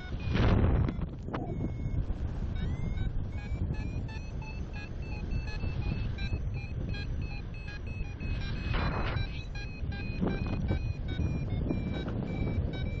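Wind rushes and buffets steadily high up in the open air.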